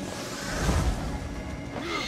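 A magical burst whooshes and crackles.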